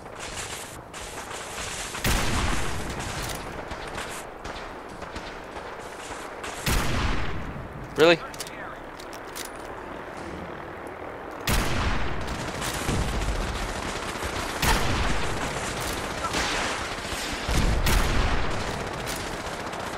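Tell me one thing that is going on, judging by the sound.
Laser rifles fire in sharp zapping bursts.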